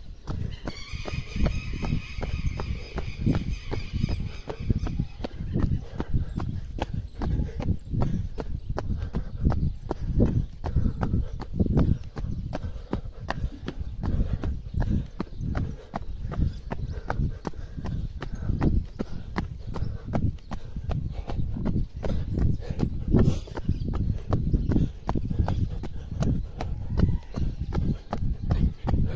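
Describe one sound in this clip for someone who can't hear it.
Running shoes thud in a brisk rhythm on concrete pavement.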